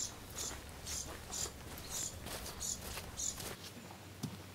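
Footsteps crunch steadily on a dirt trail.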